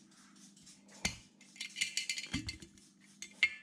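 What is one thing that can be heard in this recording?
A glass jar knocks against a hard surface.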